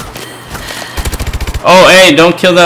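Rapid gunfire bursts out in a quick burst.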